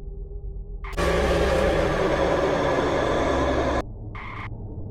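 A loud shrill shriek blasts suddenly and then cuts off.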